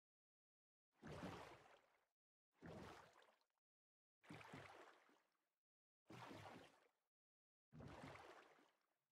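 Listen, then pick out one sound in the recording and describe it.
Oars splash through water in regular strokes.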